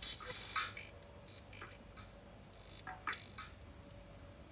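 Electronic drum beats play from a sampler in short bursts.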